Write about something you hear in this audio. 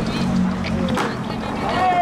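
A skateboard snaps and clacks as it lands on concrete.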